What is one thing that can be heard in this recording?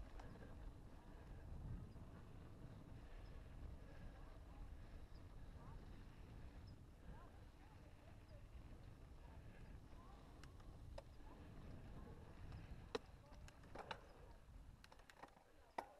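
Bike tyres roll and crunch over a dirt trail.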